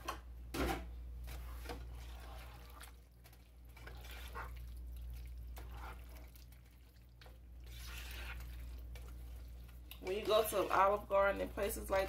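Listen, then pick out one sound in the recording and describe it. A plastic spatula stirs and scrapes through thick pasta in a pan.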